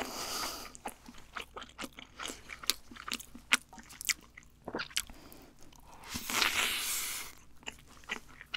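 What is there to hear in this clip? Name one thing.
A woman bites and chews food loudly, close to a microphone.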